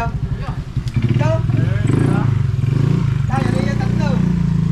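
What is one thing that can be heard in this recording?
A motorcycle engine idles close by.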